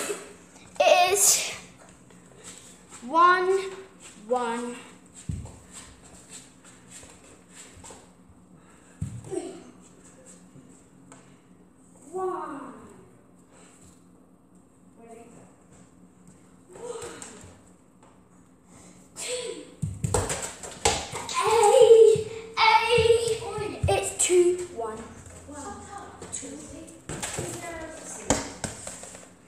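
A young girl speaks and exclaims close by.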